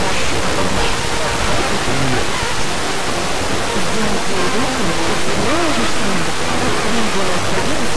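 Radio static hisses steadily, with a weak broadcast fading in and out beneath it.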